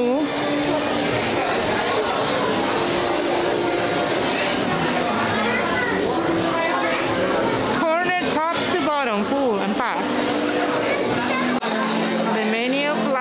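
A large crowd chatters and murmurs in a busy, echoing hall.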